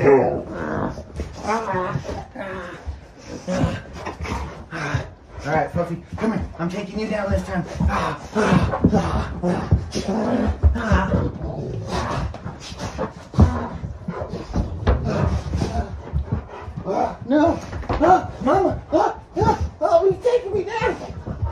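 Dogs whine and grunt while playing.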